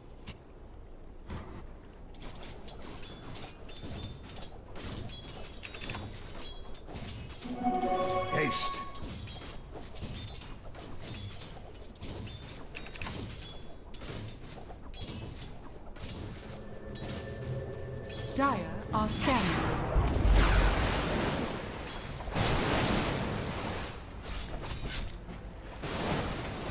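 Game fight effects clash and crackle.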